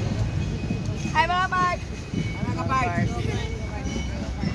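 Young boys talk loudly close by.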